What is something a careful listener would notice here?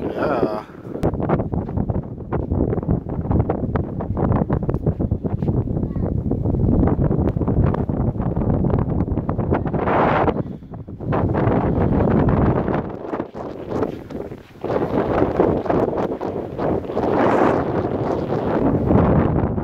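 Wind blows hard and rumbles against the microphone outdoors.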